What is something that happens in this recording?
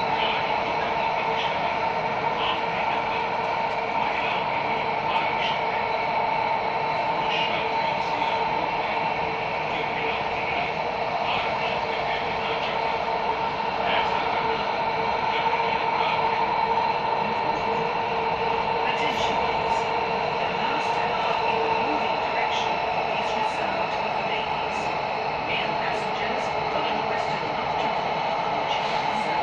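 A metro train hums and rumbles steadily as it runs along the track.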